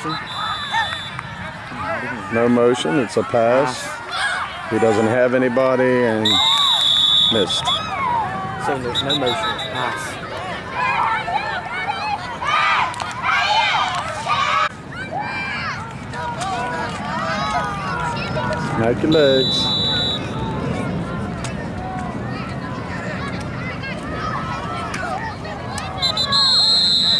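A referee's whistle blows sharply several times.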